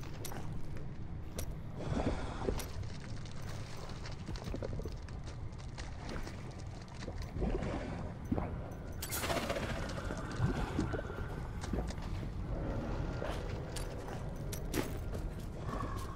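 A low, steady rumble of lava runs underneath.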